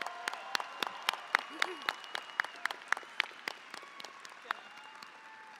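A crowd claps in a large hall.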